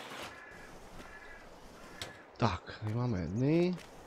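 A metal door swings open with a clank.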